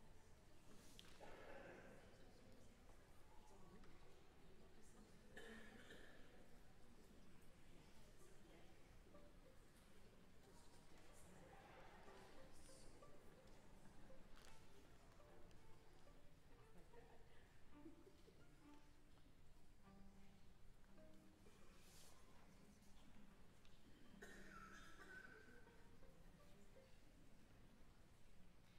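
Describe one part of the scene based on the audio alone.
A small string and wind ensemble plays softly in a large, echoing hall.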